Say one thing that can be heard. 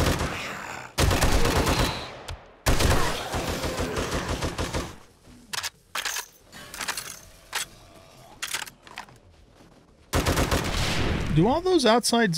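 Rapid gunfire bursts loudly in quick volleys.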